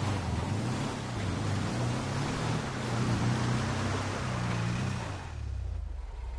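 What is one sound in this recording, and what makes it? A buggy engine roars as it drives.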